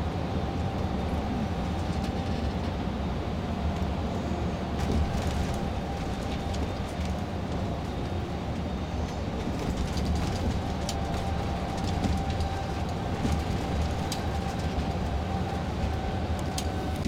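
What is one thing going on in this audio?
A car hums steadily as it drives along a road, heard from inside.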